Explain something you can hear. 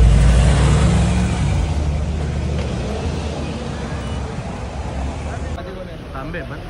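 Traffic rumbles and motorbike engines run along a busy street outdoors.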